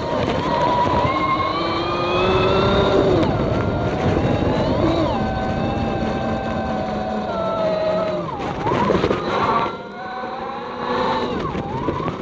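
A motor whines steadily, its pitch rising and falling as the ride speeds up and slows down.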